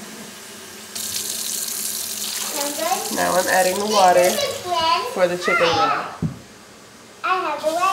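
Tap water runs and splashes into a sink.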